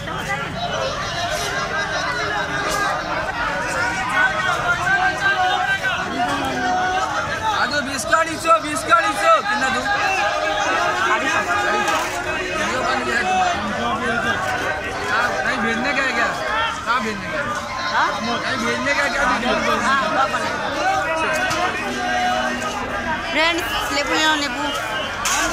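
Several voices chatter around outdoors.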